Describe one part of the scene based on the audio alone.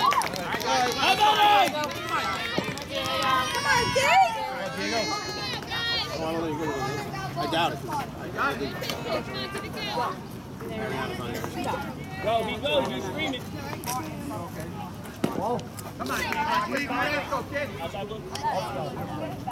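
Youth baseball players and onlookers shout and call out across an outdoor field.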